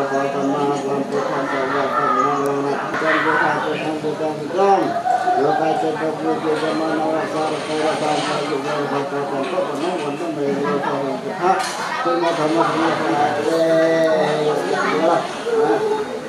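A group of men and women chant a prayer together in a steady, droning unison.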